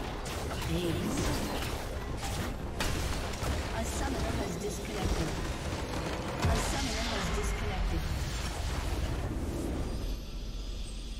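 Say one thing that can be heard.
Game spells and weapons clash loudly in a hectic battle.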